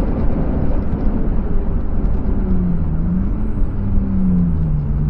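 A car engine roars loudly from inside the car, its pitch dropping as the car slows.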